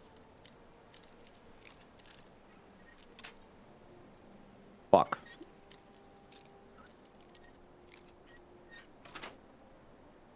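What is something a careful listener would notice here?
A lockpick scrapes and clicks faintly inside a metal lock.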